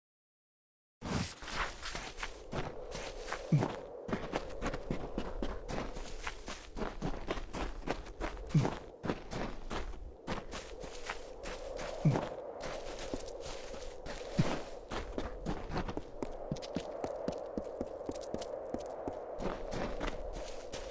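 Footsteps of a game character run steadily over grass and stone.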